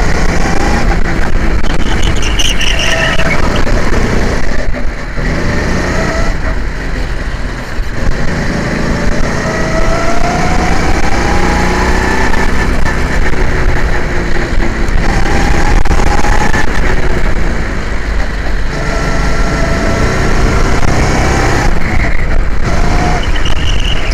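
A go-kart engine roars loudly up close, revving up and down through the corners.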